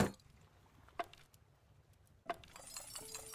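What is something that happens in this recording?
Wooden crates knock down onto wooden planks.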